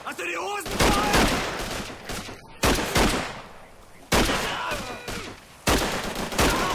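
A young man speaks casually, close to a microphone.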